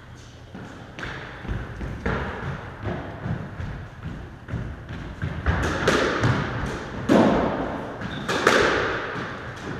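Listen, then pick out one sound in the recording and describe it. A squash ball smacks against the walls, echoing in a hard room.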